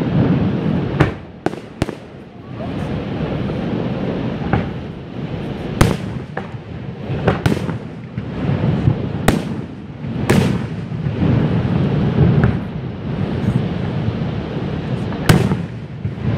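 Aerial firework shells burst with sharp booms far off.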